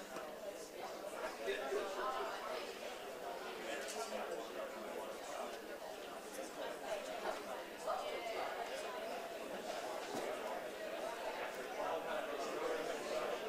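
A man speaks to an audience in a large echoing room.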